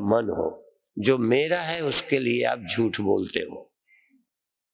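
An elderly man speaks calmly and expressively into a microphone.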